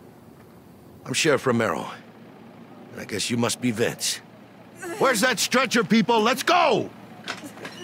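A middle-aged man speaks firmly, then shouts urgently.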